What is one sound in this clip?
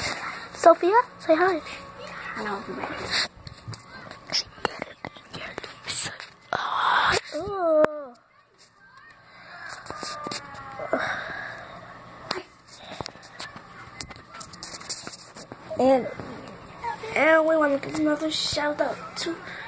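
A young girl talks in a high voice close by.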